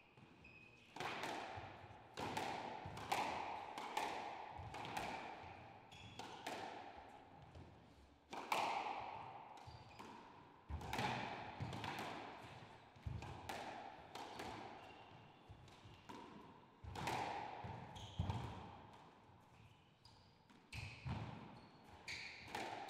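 A squash ball smacks hard against the walls, echoing around the court.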